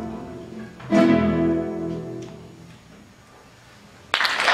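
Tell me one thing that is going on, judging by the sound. A guitar ensemble strikes a final chord that rings out and fades in an echoing hall.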